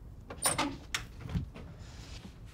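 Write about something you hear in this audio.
A man knocks on a door.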